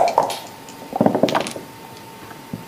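Dice rattle inside a cup.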